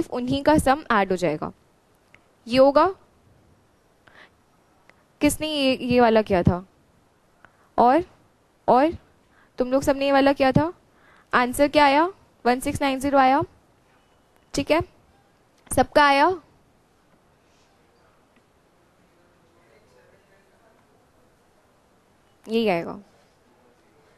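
A young woman speaks calmly and closely into a microphone.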